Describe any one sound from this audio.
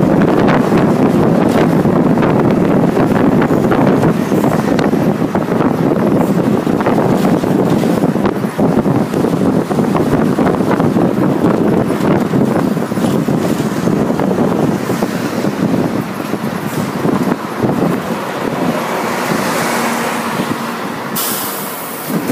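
A vehicle's engine hums steadily while driving along a road.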